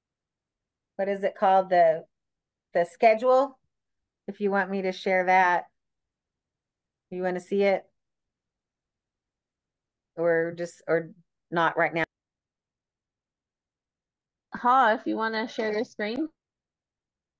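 A woman speaks calmly over an online call, with pauses between phrases.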